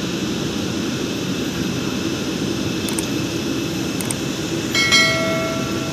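A Boeing 787 jet airliner's engines rumble as it taxies.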